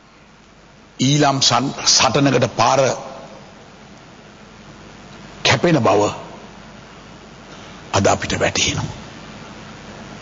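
A middle-aged man speaks forcefully through a microphone in bursts, with pauses between.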